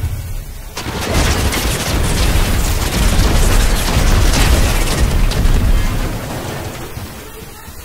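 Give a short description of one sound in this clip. Building pieces clatter rapidly into place.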